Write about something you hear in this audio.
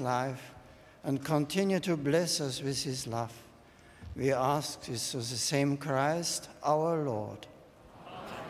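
An elderly man chants slowly into a microphone in a large echoing hall.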